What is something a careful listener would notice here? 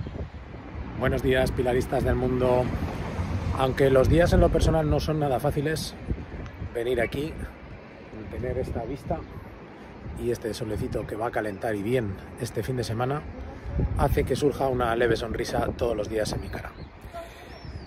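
A middle-aged man talks calmly and close up, outdoors.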